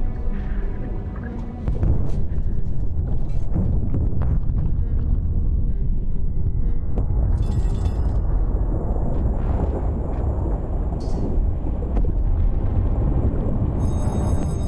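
A submarine's engine rumbles low and steadily underwater.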